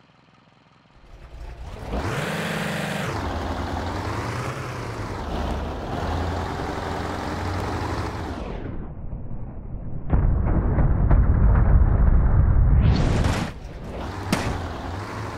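A large propeller whirs loudly.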